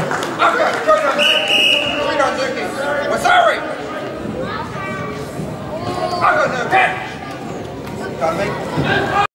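Children shout and call out in the hall.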